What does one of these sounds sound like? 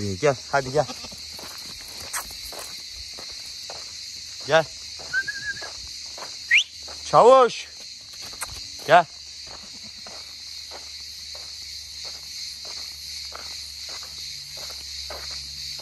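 Footsteps crunch steadily on gravel.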